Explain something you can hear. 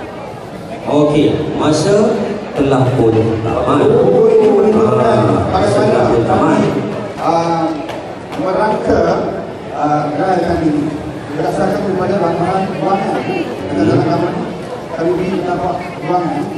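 A man sings through a microphone and loudspeakers.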